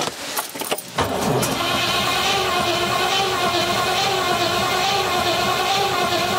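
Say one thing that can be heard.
A car engine starts and idles with a steady rumble.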